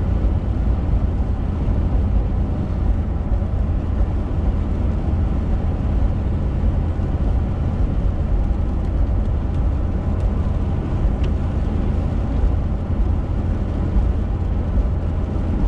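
A car engine and tyres rumble steadily on a wet road.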